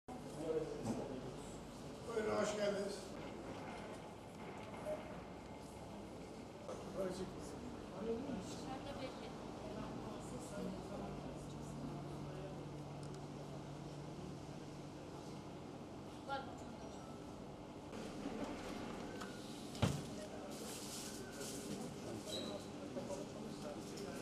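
Men talk nearby in a room.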